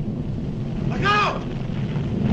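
A man cries out in alarm.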